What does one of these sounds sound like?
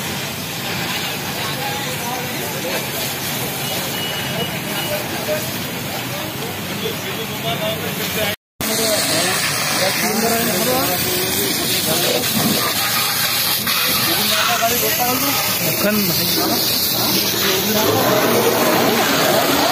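Water sprays hard from a fire hose with a steady hiss.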